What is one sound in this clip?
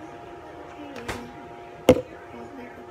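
A plastic bottle knocks sharply a few times as it is handled.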